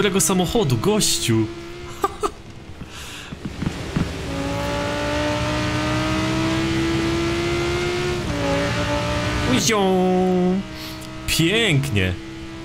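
A sports car engine roars and revs up through the gears.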